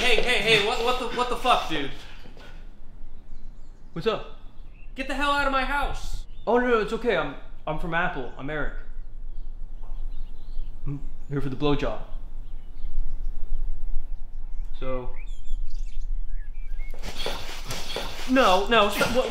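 A man speaks expressively close by.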